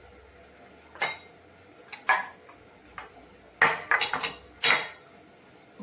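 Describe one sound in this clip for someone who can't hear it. Glass bowls clink and knock against a stone countertop.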